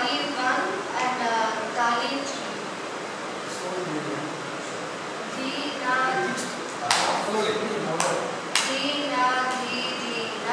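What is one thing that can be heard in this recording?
A girl sings into a microphone.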